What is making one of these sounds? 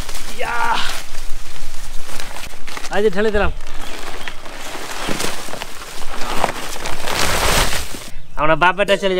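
A plastic sack rustles and crinkles.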